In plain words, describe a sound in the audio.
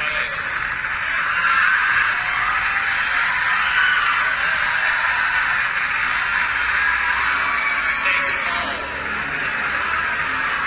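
A large crowd cheers and applauds in a big arena.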